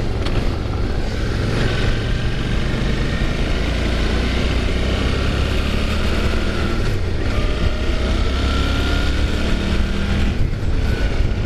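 A motorcycle engine hums steadily and shifts pitch as it rides along.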